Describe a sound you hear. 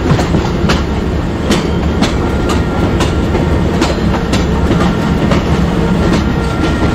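An oncoming locomotive approaches with a growing roar.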